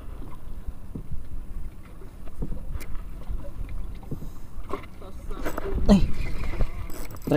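Choppy sea water slaps against a small boat's hull.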